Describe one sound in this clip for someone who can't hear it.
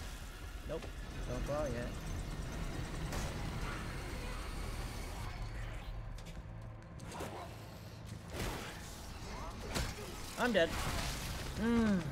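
A creature snarls and shrieks up close.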